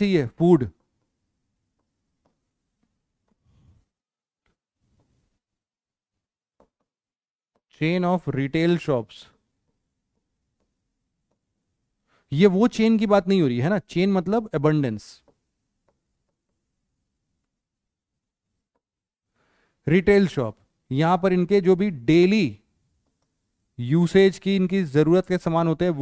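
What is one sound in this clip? A man speaks calmly and clearly through a close microphone, in short bursts with pauses.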